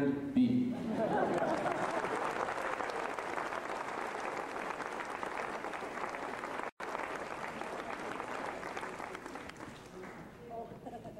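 A large audience applauds.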